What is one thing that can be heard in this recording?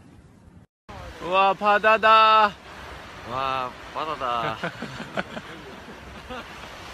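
A young man laughs loudly and close by.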